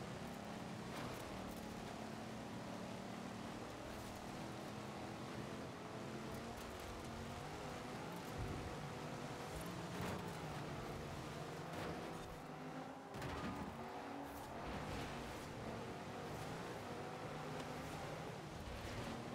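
Tyres hiss and slide over snow and wet road.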